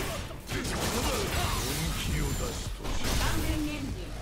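Punches and kicks land with heavy thuds and sharp impact effects.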